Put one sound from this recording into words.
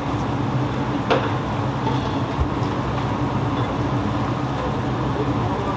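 Hot broth splashes as it is poured into a bowl.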